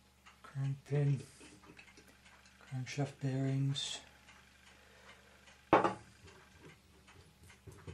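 Small metal parts click and rattle as they are handled.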